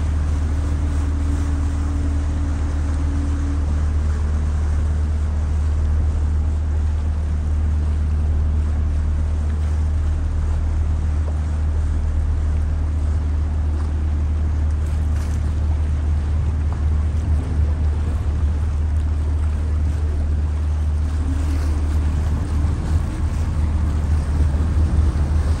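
Wind blows over the open deck.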